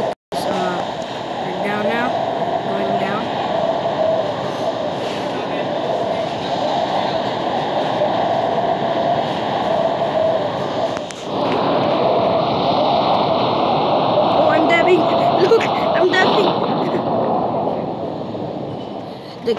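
Wind rushes steadily past a skydiver in free fall.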